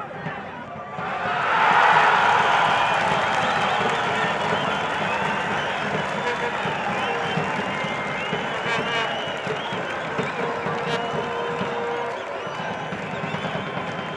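A crowd cheers loudly, then the cheering slowly fades.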